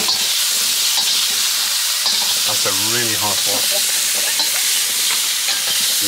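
Vegetables sizzle loudly in a hot pan.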